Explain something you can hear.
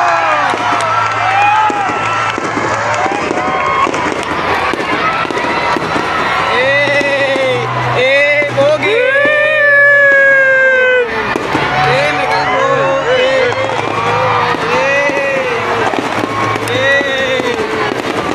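Fireworks burst and crackle overhead.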